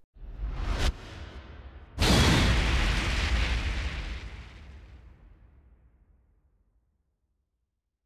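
A deep booming blast bursts out and slowly rumbles away.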